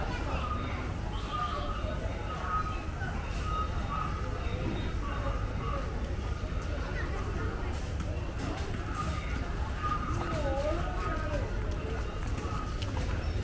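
A busy street hums with a steady outdoor murmur and low rumble.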